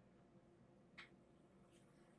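Fingers tap lightly on a tabletop.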